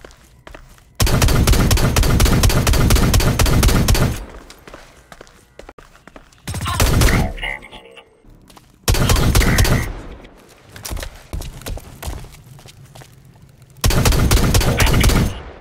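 Automatic gunfire rattles in loud, rapid bursts.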